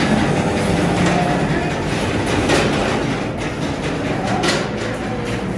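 Metal wire grates clink and rattle.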